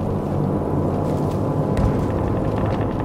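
Hands scrape and rustle against vines while climbing.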